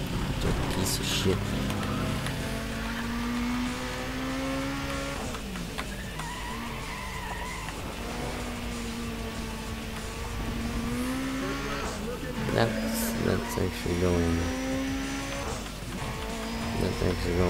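A car engine revs up and down as it races.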